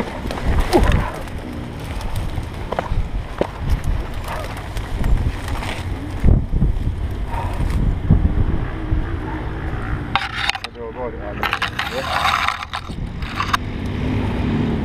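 Mud squelches and scrapes as a motorcycle is dragged.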